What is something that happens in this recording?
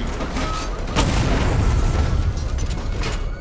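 An explosion bursts with crackling sparks.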